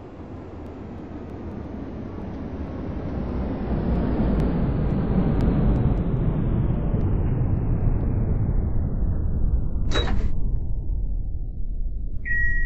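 Another tram approaches and passes close by with a rising whoosh.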